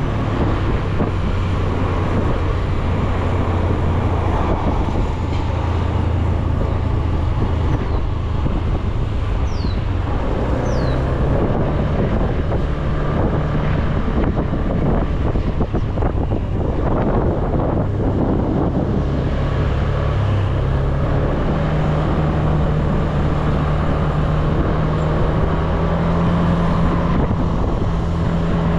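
A scooter engine hums steadily while riding, its pitch shifting with speed.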